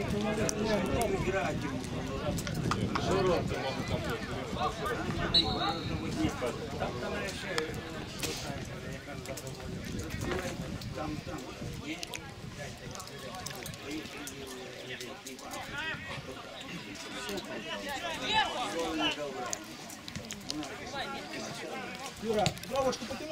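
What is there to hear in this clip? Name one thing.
Spectators chatter and call out from the sidelines.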